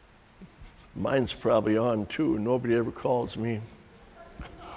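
An elderly man speaks calmly and warmly, close by.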